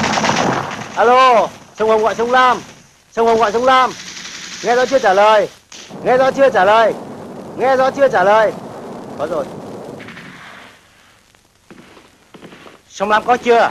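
A man speaks loudly and urgently, close by.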